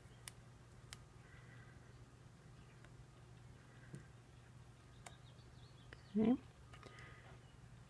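Fingers press a paper cut-out onto card with light taps.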